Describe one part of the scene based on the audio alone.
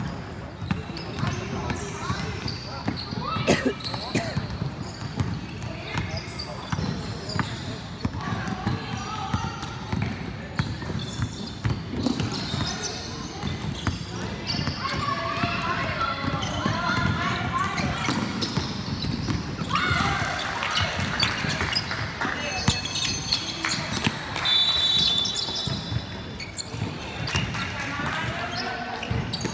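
Basketball players' shoes squeak on a hard court in a large echoing hall.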